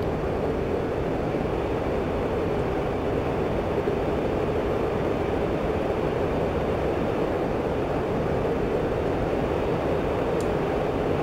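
A jet engine roars steadily inside a cockpit.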